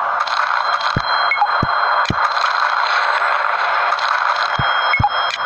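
Game sound effects chime and pop.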